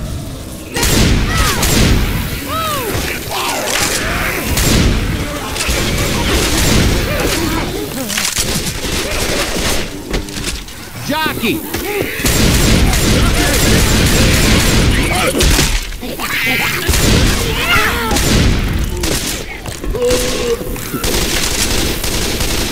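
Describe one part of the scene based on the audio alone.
Zombies snarl and groan nearby.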